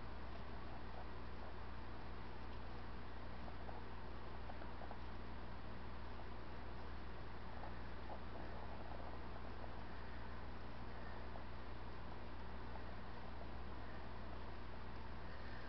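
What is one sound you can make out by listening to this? A small brush dabs softly on a painted surface.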